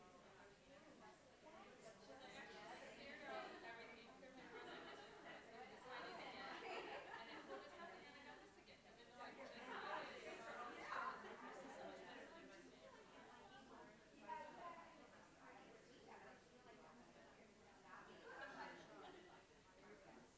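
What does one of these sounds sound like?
Many adults chatter and talk over one another in a room.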